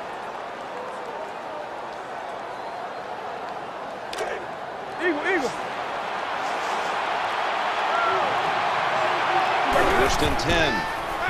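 A large stadium crowd roars and cheers steadily, rising louder.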